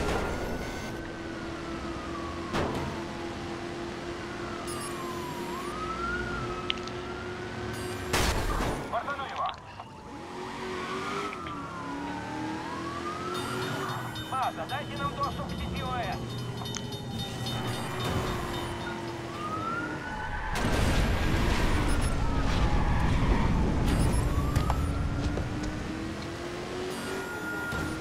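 A car engine roars and revs steadily.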